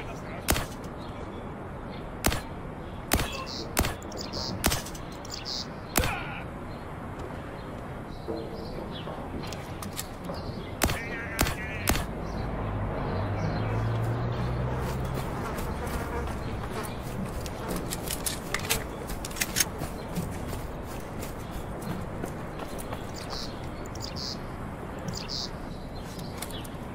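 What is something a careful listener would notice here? Footsteps tread on ground at a steady walking pace.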